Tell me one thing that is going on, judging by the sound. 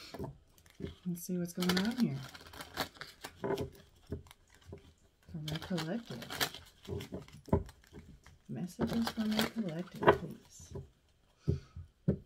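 Playing cards riffle and shuffle in hands.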